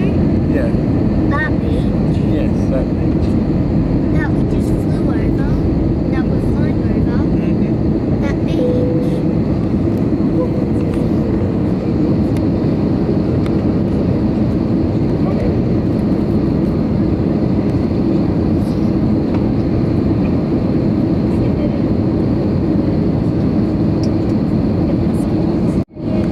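An aircraft engine roars steadily inside the cabin.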